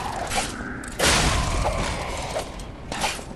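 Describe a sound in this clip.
A fiery blast bursts with a crackling roar.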